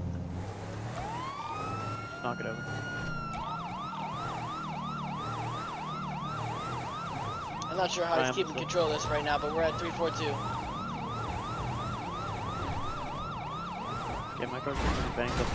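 A siren wails, then yelps rapidly.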